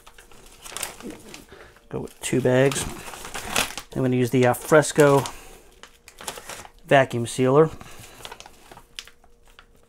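A plastic bag rustles and crinkles as it is handled.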